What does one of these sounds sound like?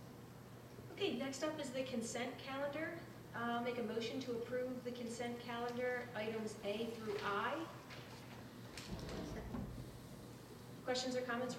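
A young woman speaks calmly into a microphone, heard through a loudspeaker.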